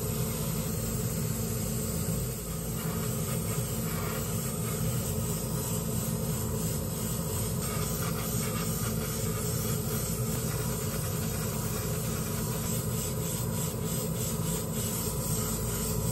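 An airbrush hisses as it sprays paint in short bursts.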